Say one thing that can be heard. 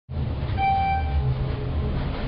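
An elevator chime rings once.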